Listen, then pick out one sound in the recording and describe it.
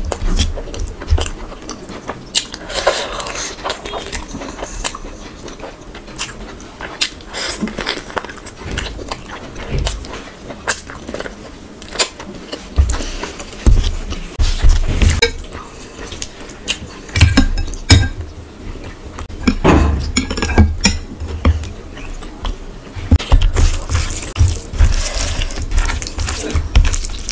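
Fingers squish and mix rice close to a microphone.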